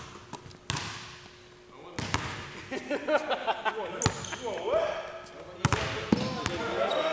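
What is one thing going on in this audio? A basketball bounces sharply on a wooden floor in an echoing gym.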